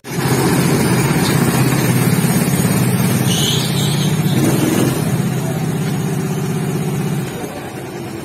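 A small kart engine idles with a steady buzzing hum close by.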